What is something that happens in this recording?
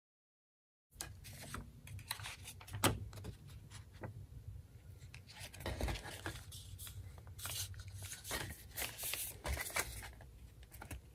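Paper rustles and slides against a wooden surface.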